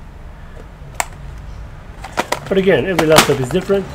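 Small metal rivets rattle inside a plastic box.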